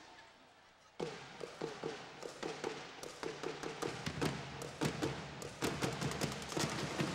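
A drumline beats snare and bass drums in a fast rhythm.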